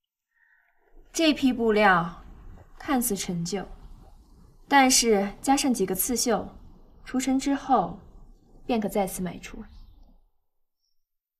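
A young woman speaks calmly and softly close by.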